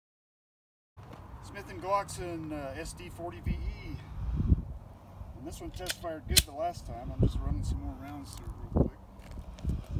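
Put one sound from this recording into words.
A man talks calmly outdoors, close by.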